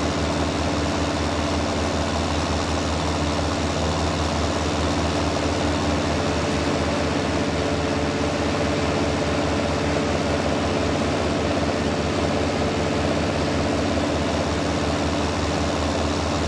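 A baler clatters and whirs as it is towed.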